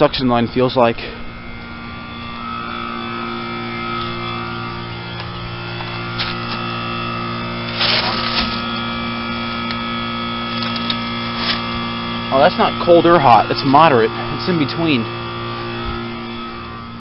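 An outdoor air conditioning unit hums steadily with a whirring fan.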